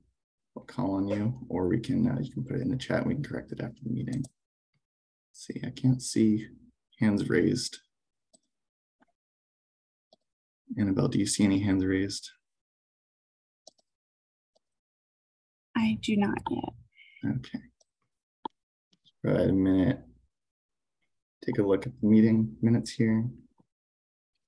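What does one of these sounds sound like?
A man speaks calmly in short phrases with pauses, heard through an online call microphone.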